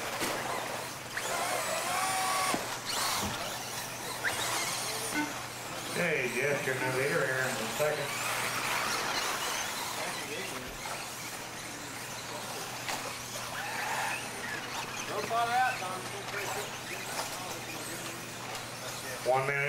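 Tyres of toy cars crunch and skid on a dirt track.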